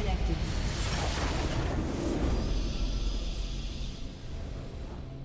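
A crystal bursts apart with a loud, crackling blast that fades away.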